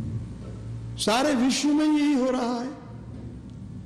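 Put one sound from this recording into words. An elderly man chants in a slow, drawn-out voice close to a microphone.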